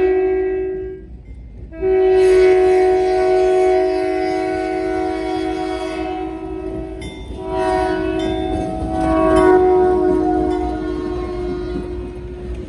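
A diesel locomotive engine rumbles as it approaches and passes.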